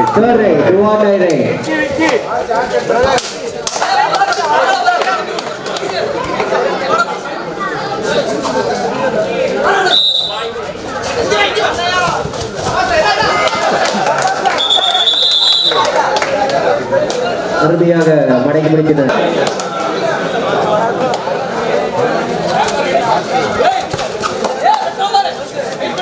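A large crowd shouts and cheers loudly.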